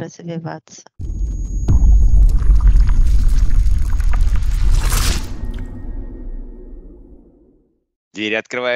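Glass shatters with a loud, rumbling crash that slowly fades.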